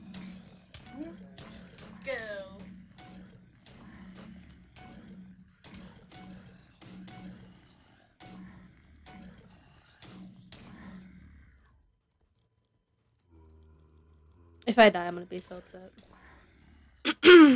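Zombies groan and moan.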